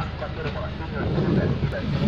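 A windscreen wiper swishes across the glass.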